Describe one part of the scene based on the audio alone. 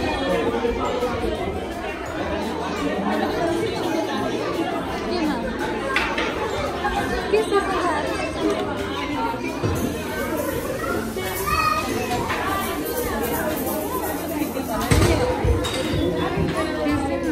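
A young woman speaks softly and warmly to a toddler nearby.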